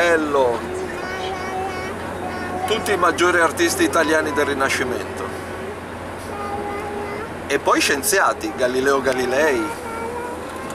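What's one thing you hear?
An elderly man speaks calmly up close.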